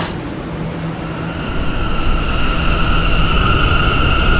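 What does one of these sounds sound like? An electric train motor hums and whines higher as the train picks up speed.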